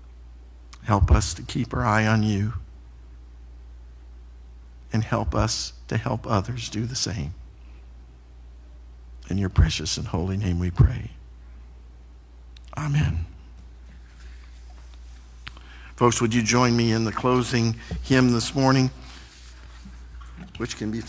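A man speaks calmly into a microphone in a room with a slight echo, pausing between phrases.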